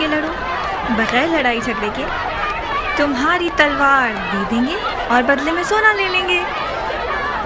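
A woman shouts angrily and with passion.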